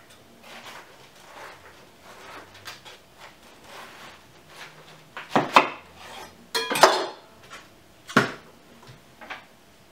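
A head of cabbage knocks against a wooden board.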